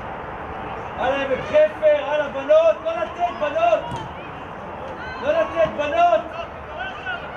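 Young men shout loudly to each other across an open outdoor field.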